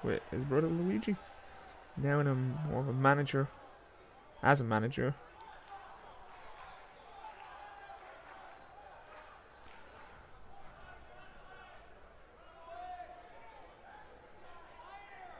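A crowd cheers in a large hall.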